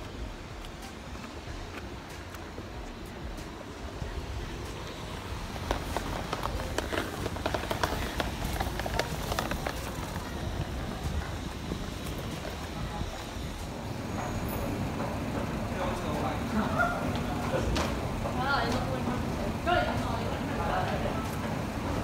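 Young people talk nearby.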